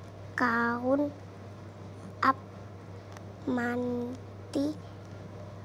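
A young girl speaks calmly and close by.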